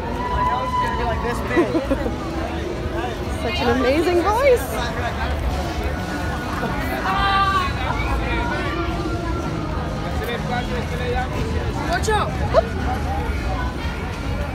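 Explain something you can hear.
A crowd chatters and bustles outdoors.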